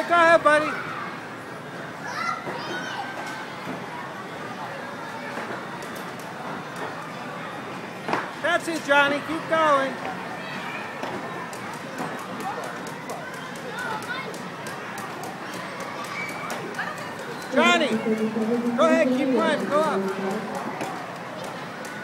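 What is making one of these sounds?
Young children shout and squeal in high voices nearby.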